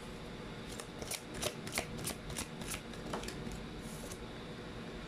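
A deck of cards is shuffled with quick soft flicks.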